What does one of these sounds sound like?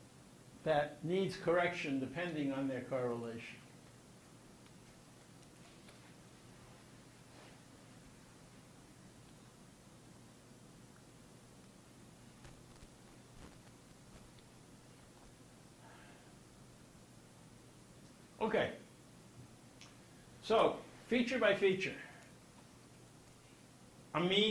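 An elderly man speaks calmly through a microphone, with long pauses.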